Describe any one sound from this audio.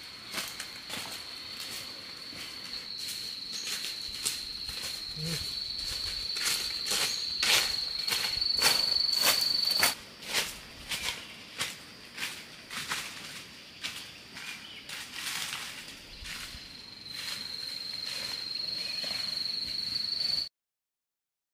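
Footsteps crunch through dry leaves on the ground.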